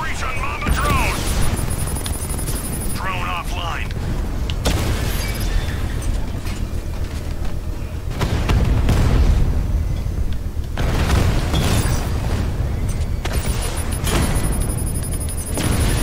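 A heavy vehicle engine rumbles and roars steadily.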